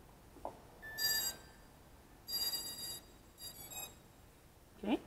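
A radio controller beeps several times in short high tones.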